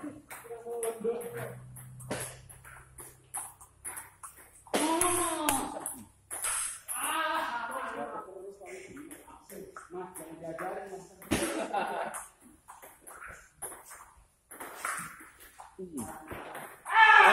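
A ping-pong ball clicks against paddles and the table.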